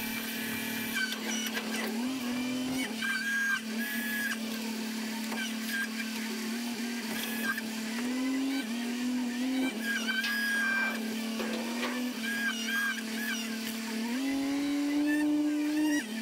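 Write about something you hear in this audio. Hydraulic valves whine and squeal in short bursts.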